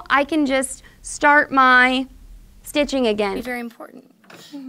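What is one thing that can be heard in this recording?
A young woman speaks brightly and clearly, close by.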